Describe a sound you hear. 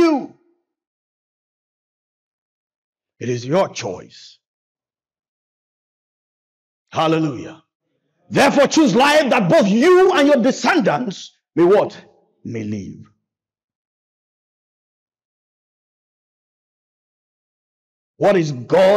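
A man preaches with animation into a microphone, in bursts with long pauses.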